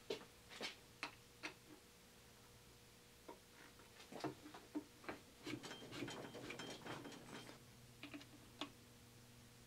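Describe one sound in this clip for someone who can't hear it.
Metal tools click and tap against metal parts.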